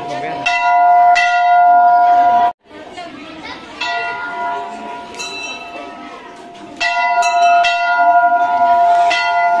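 A bell rings out with loud, repeated strikes.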